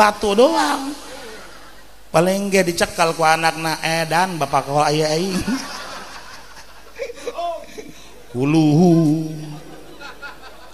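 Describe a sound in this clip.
An elderly man speaks with animation into a microphone, in drawn-out, singing phrases.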